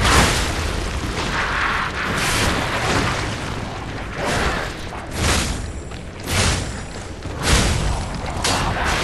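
A blade swings with sharp whooshes.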